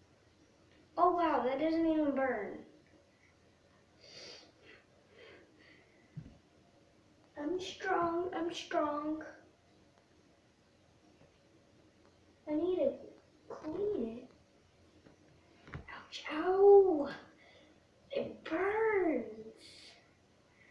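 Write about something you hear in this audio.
A young girl speaks and sings playfully, close by.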